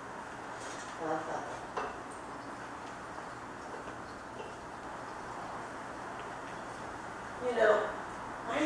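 A middle-aged man speaks a few short words nearby.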